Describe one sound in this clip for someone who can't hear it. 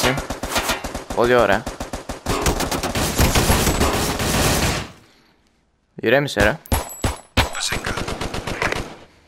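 A pistol fires rapid, loud shots.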